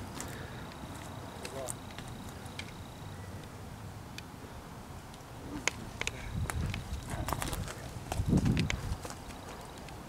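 Footsteps crunch on dry leaves and twigs nearby.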